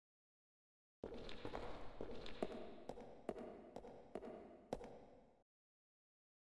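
Footsteps echo across a large stone hall.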